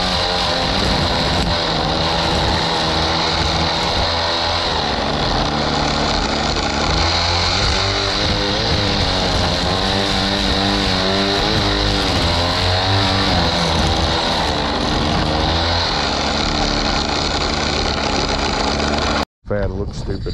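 A string trimmer line whips and cuts through grass.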